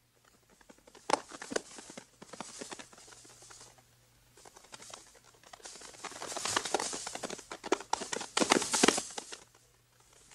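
Dogs run fast through dry rustling leaves.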